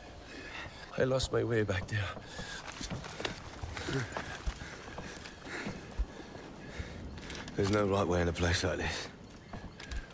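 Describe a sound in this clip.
A young man speaks quietly and tensely, close by.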